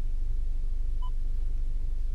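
A touchscreen gives a short soft beep when tapped.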